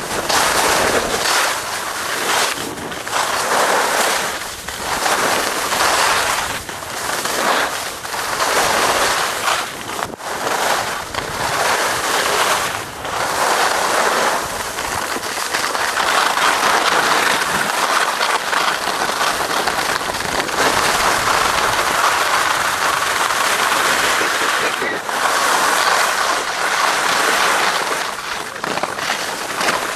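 Wind rushes loudly past the microphone.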